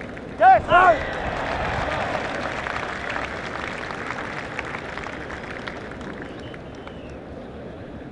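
A large crowd cheers and then dies down.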